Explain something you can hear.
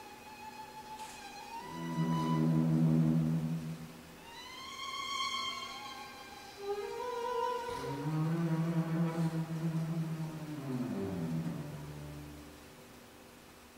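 A string quartet plays slow, sustained notes in an echoing hall, then falls silent.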